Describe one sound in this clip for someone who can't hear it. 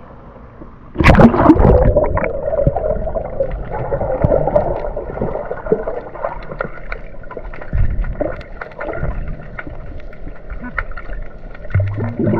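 Bubbles gurgle and rumble, muffled underwater.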